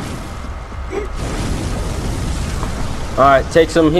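Flames burst with a loud whoosh.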